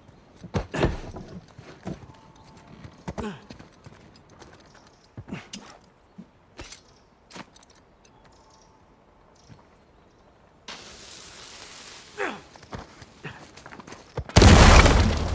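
Footsteps scuff on stone.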